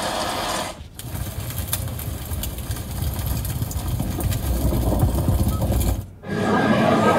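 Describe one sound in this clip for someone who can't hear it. A fire crackles through a loudspeaker.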